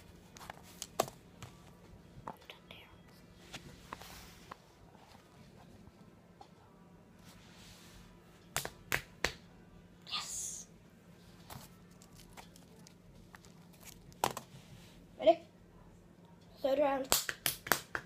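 Hands clap and tap nearby.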